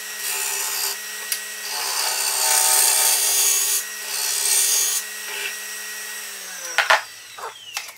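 A lathe motor hums steadily, then winds down.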